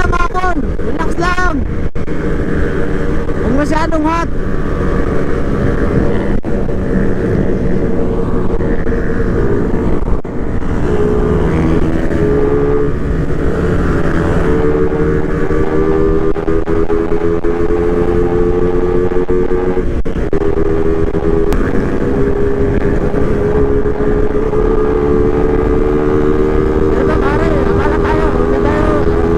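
A motorcycle engine hums steadily at speed.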